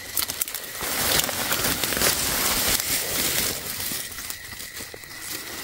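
Dry grass and leaves rustle as a hand pushes through them.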